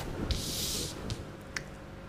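A card slides across a table.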